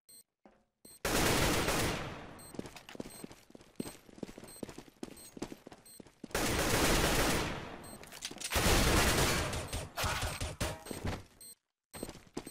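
Rifle shots ring out in loud bursts.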